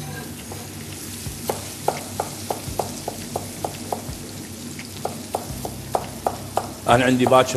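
A knife chops on a wooden board with quick, even knocks.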